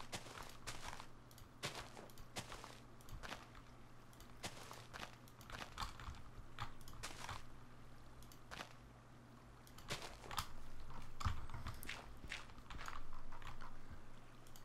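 Footsteps crunch on grass and stone.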